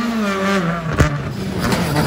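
A rally car's exhaust pops with a sharp bang.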